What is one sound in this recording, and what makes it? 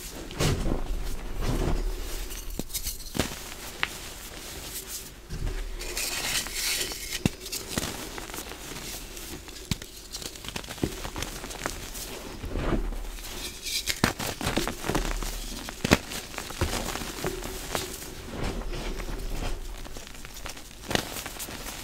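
Chalk blocks crack and break apart in hands.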